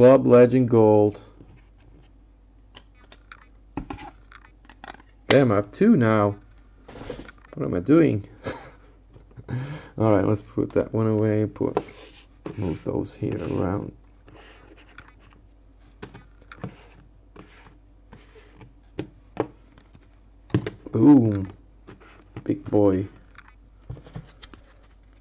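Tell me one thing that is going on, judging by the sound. Hard plastic card cases clack softly as they are handled and set down on a table.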